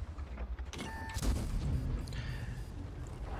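A cannon shell explodes with a loud boom.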